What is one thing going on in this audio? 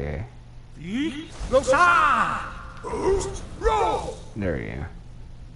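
A loud magical blast bursts and rushes outward.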